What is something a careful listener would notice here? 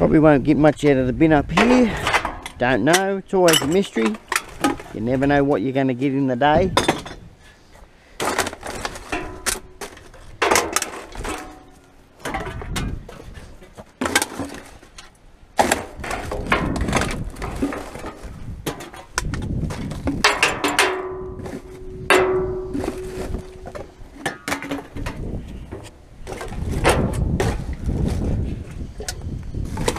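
Cans and trash clatter and rattle inside a metal barrel.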